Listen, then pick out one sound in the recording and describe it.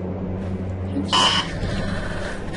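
Static crackles and hisses in a sudden burst.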